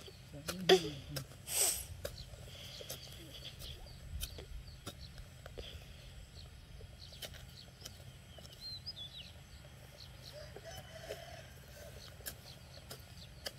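A digging stick thuds and scrapes into dry soil.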